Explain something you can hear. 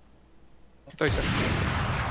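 A sniper rifle fires a single loud shot that echoes away.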